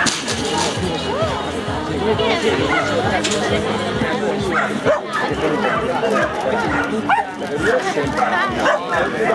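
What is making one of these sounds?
A woman calls out commands to a dog.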